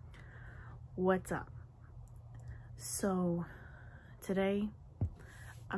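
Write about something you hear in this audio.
A young woman speaks casually, close to a microphone.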